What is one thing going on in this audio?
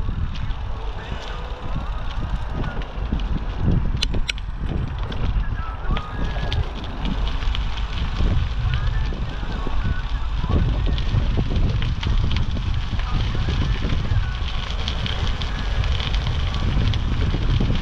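Wind buffets loudly and steadily outdoors.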